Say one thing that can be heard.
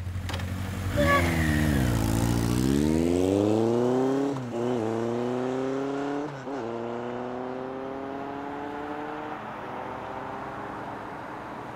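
A motorcycle engine revs up and speeds away, shifting gears.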